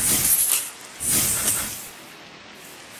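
An explosion bursts loudly.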